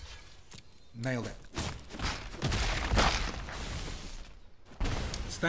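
A heavy magical impact bursts with a crash.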